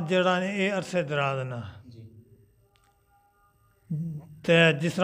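An elderly man sings in a drawn-out melodic voice through a microphone.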